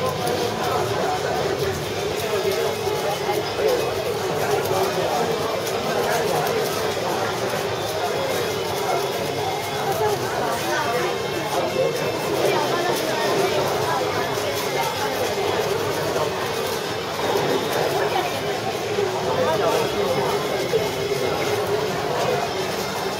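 A puzzle cube clicks quickly as it is twisted.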